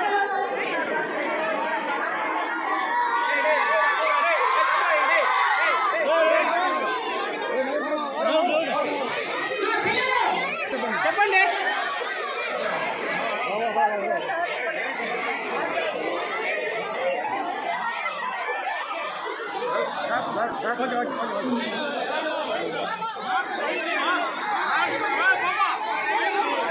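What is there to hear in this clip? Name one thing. Young girls laugh and squeal.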